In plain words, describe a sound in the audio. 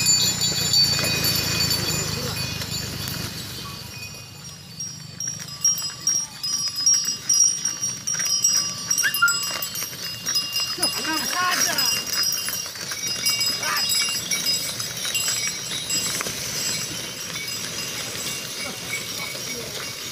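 Ox hooves clop on the road.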